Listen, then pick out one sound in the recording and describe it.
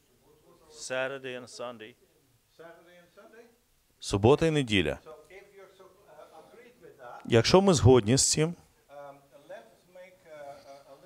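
An older man speaks with animation, lecturing.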